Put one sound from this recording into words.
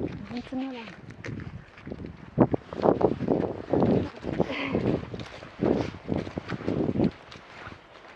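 Footsteps crunch through dry leaves close by.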